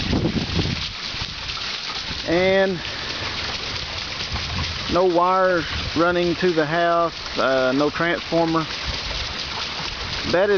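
A shallow stream trickles and splashes over rocks.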